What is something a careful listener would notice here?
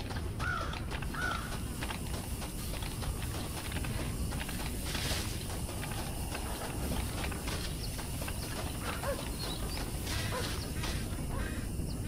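Footsteps crunch quickly on dry ground.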